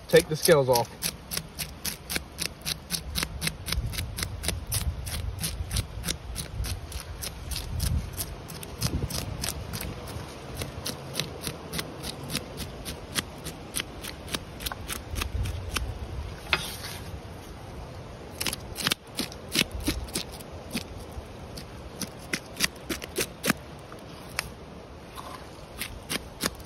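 A knife scrapes scales off a fish with quick, rhythmic rasps.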